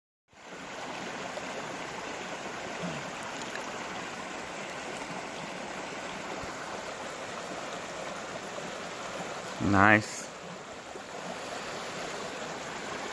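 Water trickles steadily over stones.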